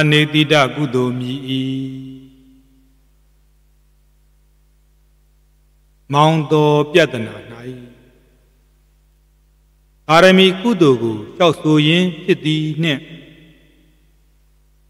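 A man chants slowly and steadily into a microphone, in phrases with pauses between them.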